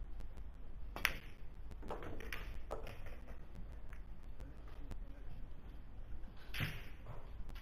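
A cue strikes a billiard ball with a sharp click.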